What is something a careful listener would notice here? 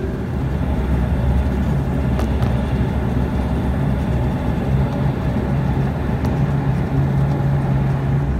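Wheels roll over the wet taxiway.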